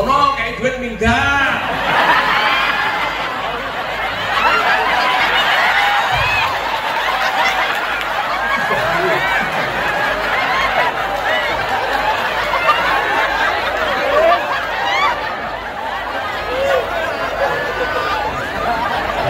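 A crowd of children shouts and cheers excitedly.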